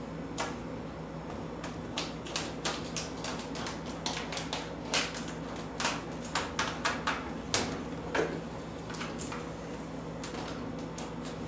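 Plastic film crinkles and crackles as it is peeled away.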